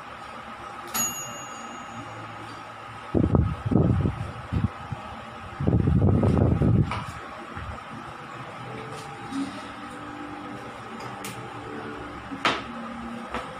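A spoon clinks against a metal bowl.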